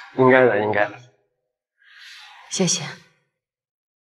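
A woman laughs softly.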